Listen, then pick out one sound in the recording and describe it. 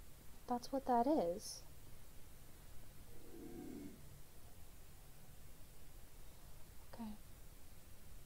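A young woman speaks briefly into a microphone in an expressive voice.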